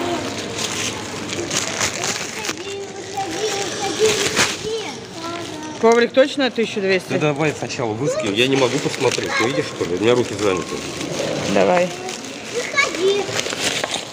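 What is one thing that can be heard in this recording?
A plastic bag rustles and crinkles in hands.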